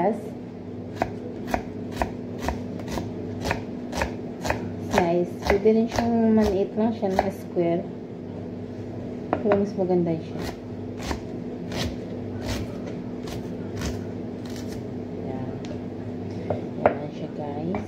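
A knife taps steadily on a cutting board, chopping an onion.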